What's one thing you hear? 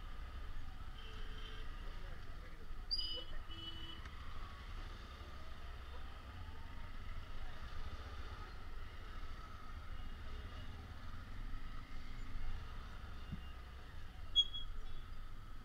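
Vehicle horns beep briefly nearby.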